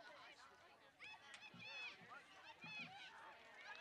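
Young women shout to each other across an open field.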